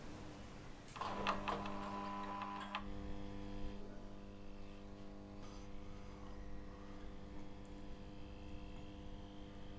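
Fluorescent ceiling lights hum steadily.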